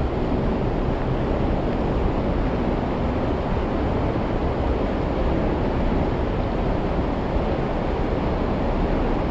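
Water churns and splashes steadily in a pool, echoing in an indoor hall.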